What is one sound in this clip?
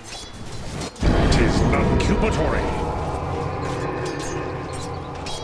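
A loud magical blast booms and rumbles.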